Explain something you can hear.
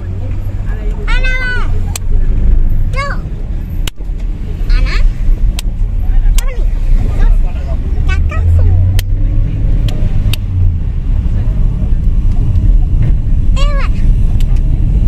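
A young child speaks and sings in a high voice close by.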